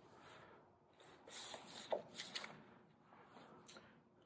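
Book pages rustle as a man opens a book.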